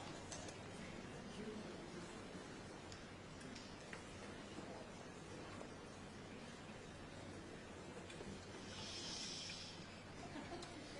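A large audience murmurs and chatters quietly in an echoing hall.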